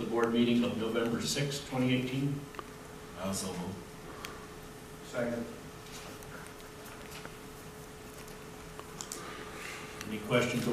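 An elderly man speaks calmly into a microphone, in short phrases with pauses between them.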